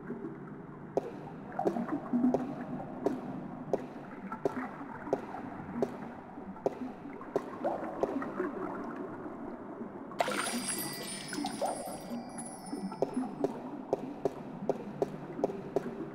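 Footsteps tap steadily on a stone floor.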